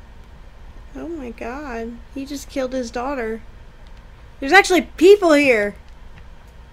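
A young woman talks animatedly, close to a microphone.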